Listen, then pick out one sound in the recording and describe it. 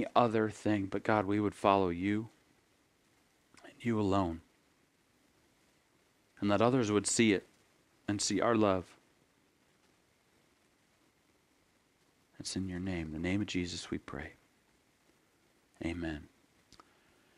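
A man speaks calmly and thoughtfully into a close microphone, with long pauses.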